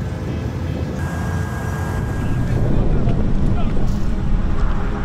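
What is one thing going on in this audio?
A deep rumble of distant explosions rolls on.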